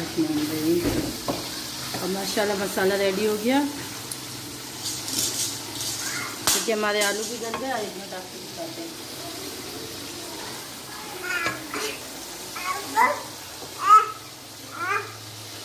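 A wooden spoon scrapes and stirs thick sauce in a metal pot.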